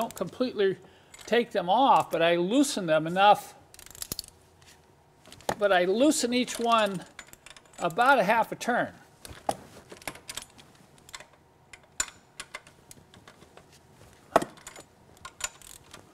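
A ratchet wrench clicks as it turns a fitting.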